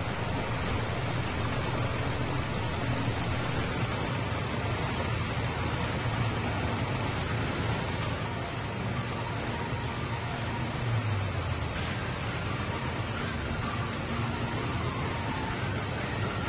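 A harvester's machinery clatters and whirs.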